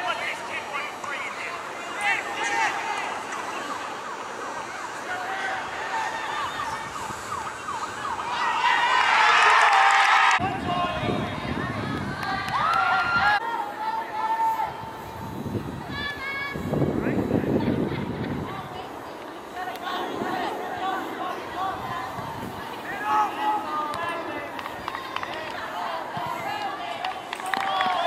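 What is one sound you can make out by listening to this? Teenage boys shout and call to each other across an open outdoor field.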